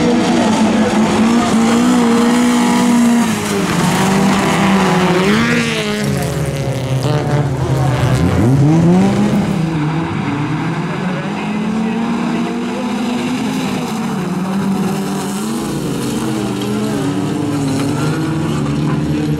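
Several racing car engines roar and rev loudly.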